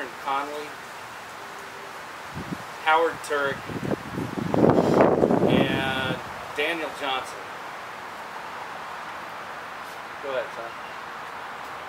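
A middle-aged man speaks calmly and close by, in short bursts.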